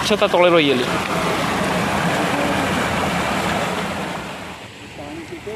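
Water rushes and splashes strongly through a narrow channel.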